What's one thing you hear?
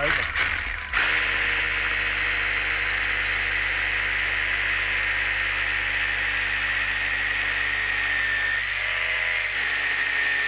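A hammer drill whirs steadily as it bores into concrete block.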